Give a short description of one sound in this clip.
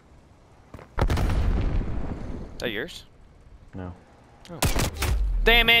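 Gunfire rattles in loud, rapid bursts.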